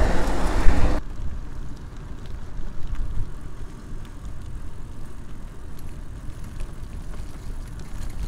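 Bicycle tyres roll quietly over a paved path.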